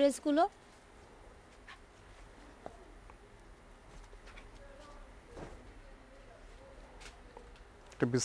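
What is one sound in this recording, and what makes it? Stiff paper pages are turned and rustle.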